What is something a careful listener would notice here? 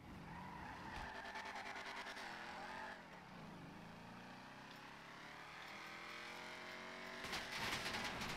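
A car engine revs and rises in pitch as it accelerates.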